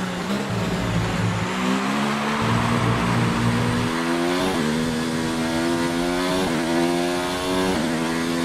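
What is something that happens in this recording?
A racing car engine revs up high and shifts gears several times.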